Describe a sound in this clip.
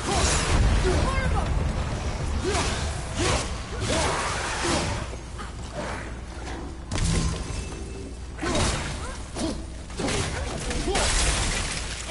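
Icy blasts whoosh in rushes.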